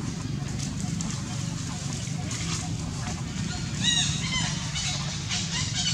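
A monkey's footsteps rustle dry leaves.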